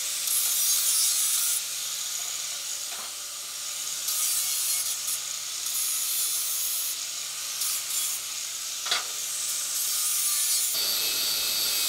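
An angle grinder whines as it grinds metal.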